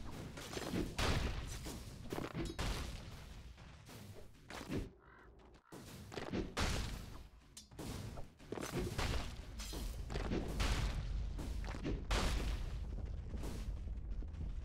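Game combat sound effects clash and crackle in quick bursts.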